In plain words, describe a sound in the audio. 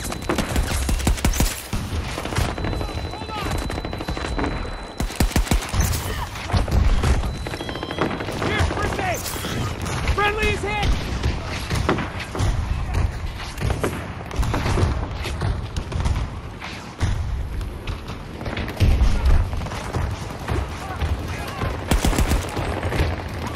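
Explosions boom and rumble all around.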